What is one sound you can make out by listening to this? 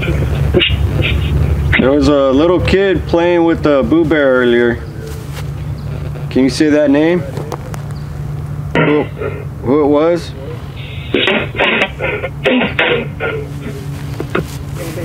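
A small loudspeaker gives off a low crackling hum.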